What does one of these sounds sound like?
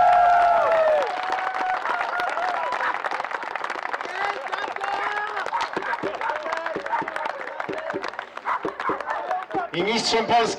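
A small group claps and applauds outdoors.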